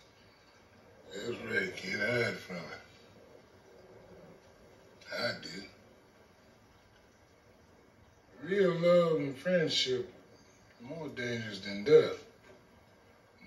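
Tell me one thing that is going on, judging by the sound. A middle-aged man speaks slowly and quietly.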